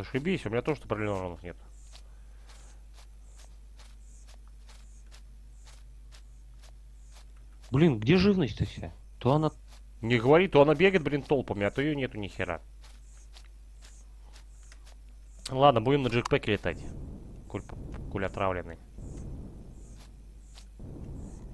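Footsteps rustle steadily through dry grass.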